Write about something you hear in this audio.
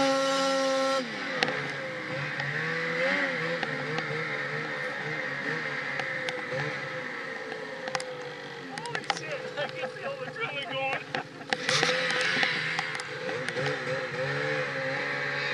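A snowmobile engine idles steadily nearby.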